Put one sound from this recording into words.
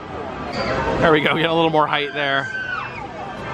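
Riders scream with excitement on a swinging ride nearby.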